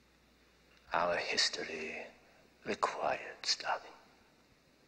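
A middle-aged man answers calmly close by.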